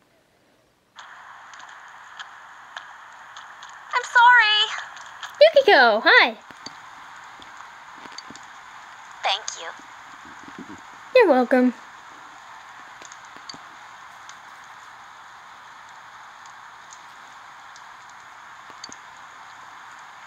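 Steady rain falls and patters outdoors.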